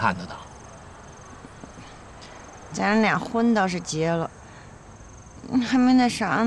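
A woman speaks softly and sadly, close by.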